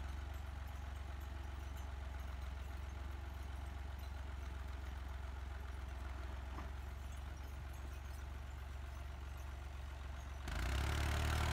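A tractor engine idles with a steady low throb.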